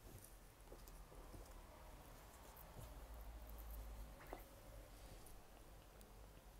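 Fabric rustles softly as hands fold it.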